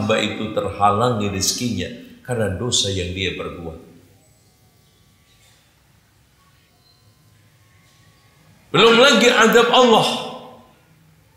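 A man preaches forcefully through a microphone in an echoing hall.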